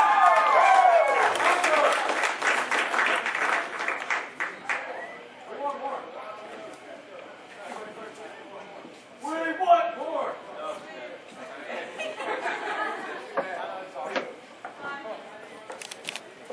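A rock band plays loudly in an echoing hall.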